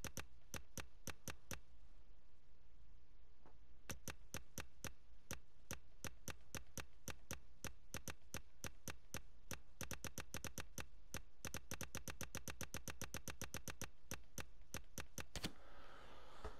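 A game menu ticks rapidly as a list scrolls.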